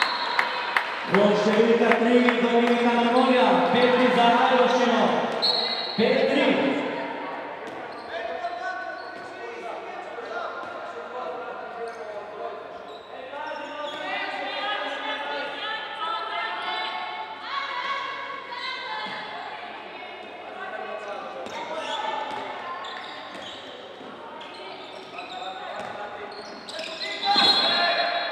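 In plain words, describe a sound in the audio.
A crowd of spectators chants and sings loudly in an echoing hall.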